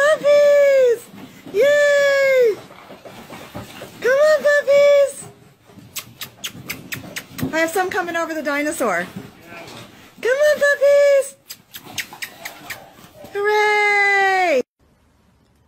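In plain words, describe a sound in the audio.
Plastic balls rattle and clatter as puppies scamper through them.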